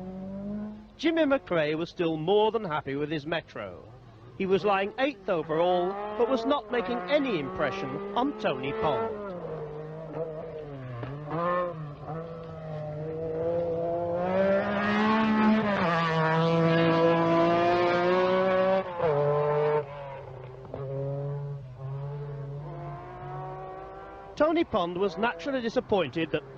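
A rally car engine pops and crackles between gear changes.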